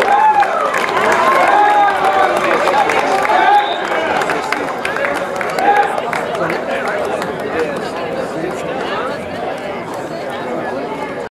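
A large outdoor crowd cheers and whoops loudly.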